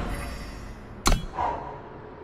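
A sharp thud of a game piece landing sounds.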